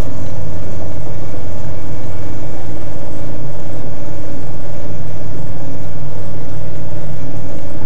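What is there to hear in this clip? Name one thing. Windscreen wipers sweep across the glass.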